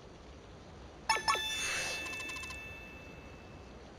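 A bright sparkling chime rings out.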